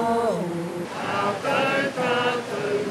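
A group of men and women sings together.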